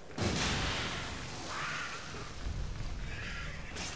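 Water sprays and splashes down steadily.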